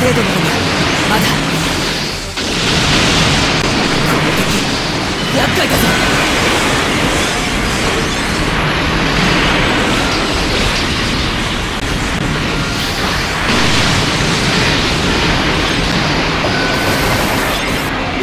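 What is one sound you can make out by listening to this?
Beam weapons fire and blast with sharp bursts.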